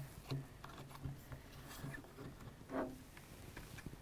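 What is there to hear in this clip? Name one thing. A wooden rifle knocks and rubs against a table as it is handled.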